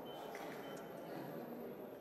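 An elderly man laughs close by.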